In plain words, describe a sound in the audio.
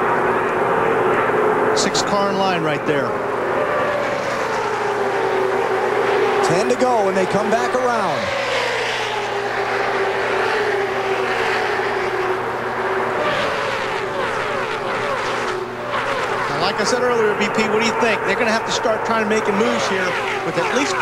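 Race car engines roar steadily as a pack of cars speeds past.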